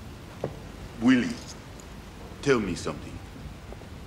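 A man speaks in a low, quiet voice nearby.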